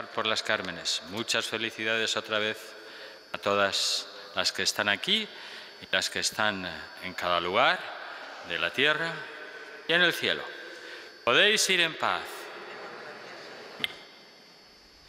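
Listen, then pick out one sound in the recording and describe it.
An elderly man chants through a microphone in a large echoing hall.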